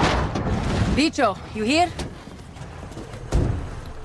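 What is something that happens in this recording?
A car door opens and thuds.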